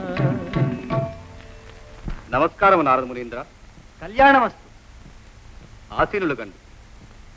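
A man speaks dramatically, in bursts.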